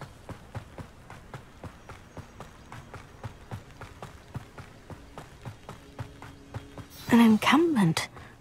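Quick footsteps run over a dirt path.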